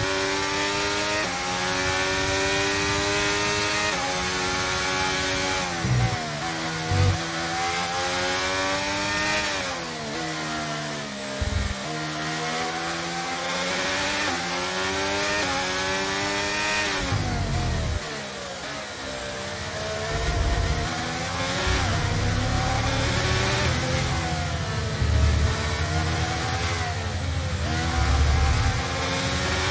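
A Formula One car's engine screams at high revs, dropping in pitch in steps as it shifts down through the gears.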